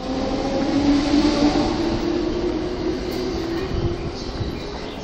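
An electric train motor hums and whines as the train pulls away.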